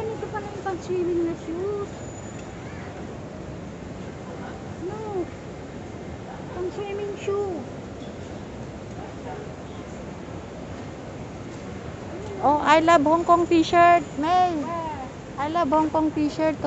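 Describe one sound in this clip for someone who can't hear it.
A woman talks nearby in a high, lively voice.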